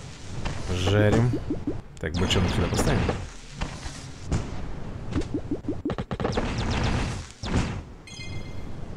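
Video game effects zap and clang in quick succession.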